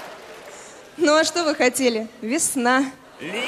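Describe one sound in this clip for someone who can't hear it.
A young woman speaks brightly into a microphone.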